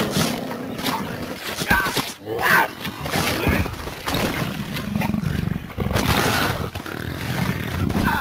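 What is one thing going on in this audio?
A tiger tears at a carcass.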